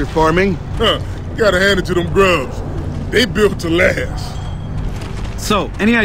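A second man answers in a deep voice.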